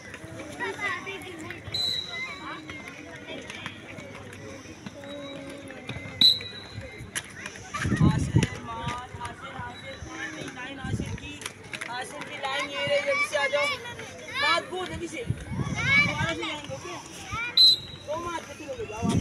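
Children chatter and call out nearby, outdoors.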